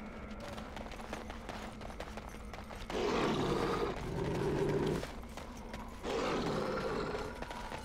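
Footsteps tread steadily on dirt.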